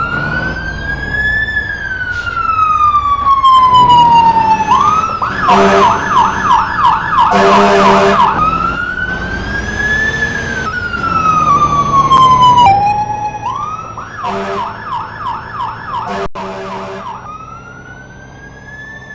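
A truck engine rumbles.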